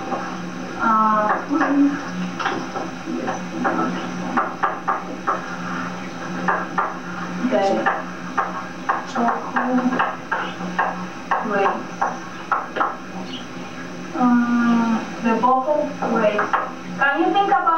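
A woman speaks steadily.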